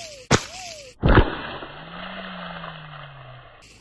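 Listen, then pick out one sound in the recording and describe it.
A foot stomps down on a plastic bag, and its contents crunch loudly.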